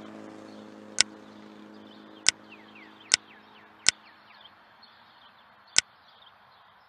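Short video game menu blips sound as options are selected.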